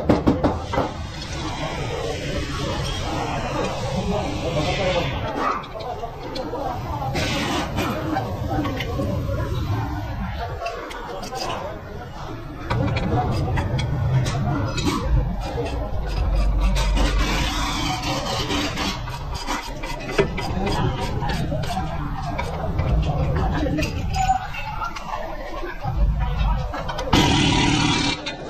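Metal tools clink and knock against car parts.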